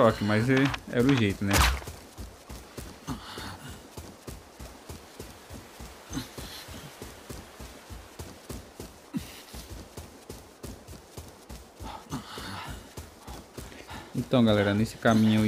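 Footsteps rustle steadily through grass.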